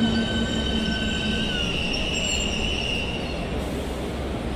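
A train's electric motors whine and wind down as the train slows to a stop.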